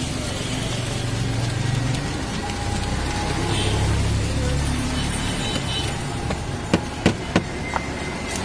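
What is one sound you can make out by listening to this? A wooden stick stirs and scrapes food in a plastic mug.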